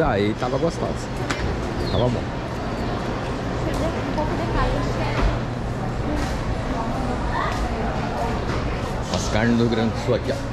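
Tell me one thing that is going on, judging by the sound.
Men and women chatter around in a busy echoing passage.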